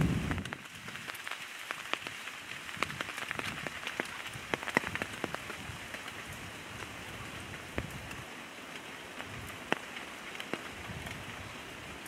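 Dry twigs and leaves rustle as a young gorilla handles them.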